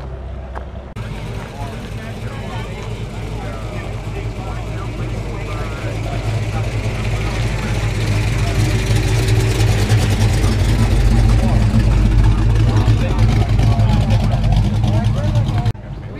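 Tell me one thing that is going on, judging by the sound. A car engine rumbles deeply close by and revs as the car pulls away.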